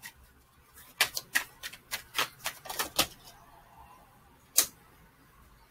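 Paper rustles and clicks as a young woman handles a card.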